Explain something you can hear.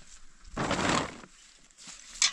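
A plastic sheet rustles and crinkles.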